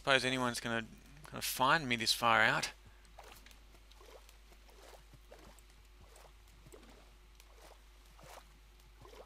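Water splashes softly as something swims through it.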